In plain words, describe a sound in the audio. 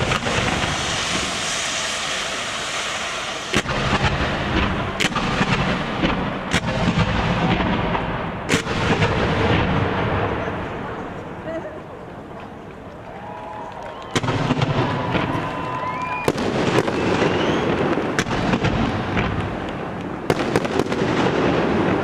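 Fireworks boom and thud.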